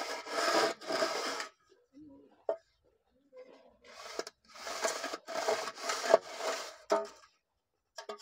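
A metal straightedge scrapes along wet mortar.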